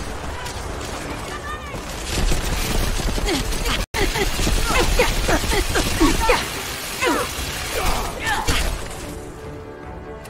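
Laser rifles fire in rapid bursts.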